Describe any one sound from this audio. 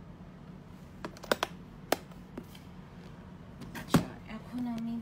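A hand knocks and rubs against a phone.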